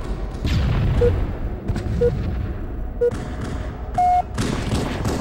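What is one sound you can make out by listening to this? A game's countdown beeps three times at even intervals, then gives a longer, higher beep.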